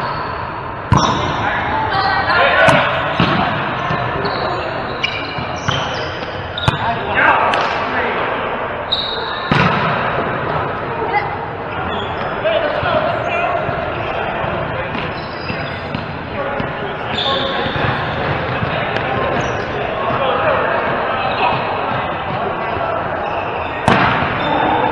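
A volleyball is struck with a hand, echoing in a large hall.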